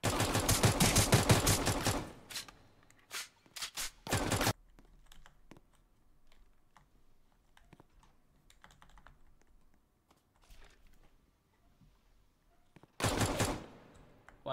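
A pistol fires a rapid series of loud shots.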